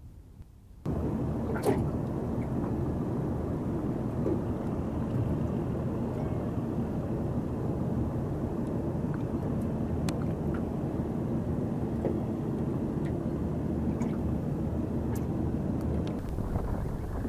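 A small outboard motor drones steadily across the water.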